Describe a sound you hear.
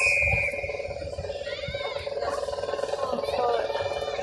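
Young women call out to each other in the distance on an open field.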